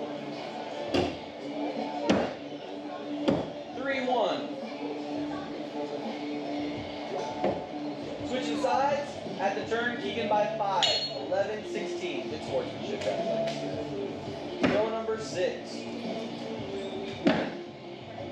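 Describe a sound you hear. Axes thud sharply into wooden targets.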